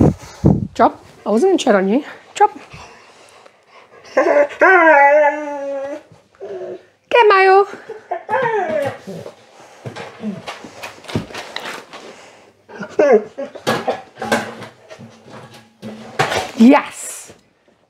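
A dog's paws patter on the floor.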